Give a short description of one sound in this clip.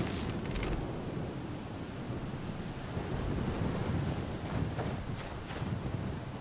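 Footsteps swish and crunch through dry grass.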